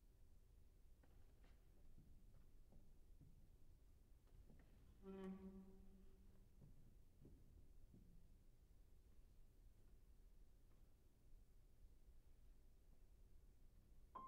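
A piano plays soft, sparse notes that ring out in a large echoing hall.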